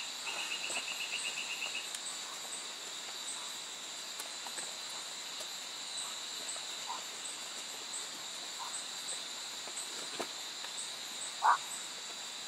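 A knife cuts and scrapes through meat and hide.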